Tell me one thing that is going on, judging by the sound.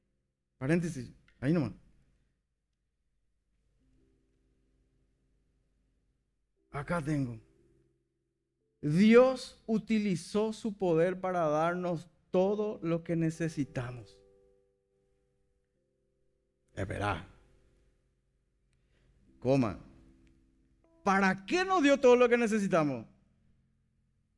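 A man speaks with animation through a microphone, in bursts with long pauses.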